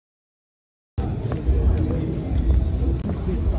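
Footsteps tread on paving outdoors.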